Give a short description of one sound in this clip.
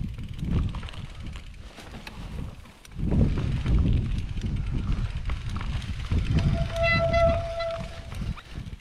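Wind buffets the microphone outdoors.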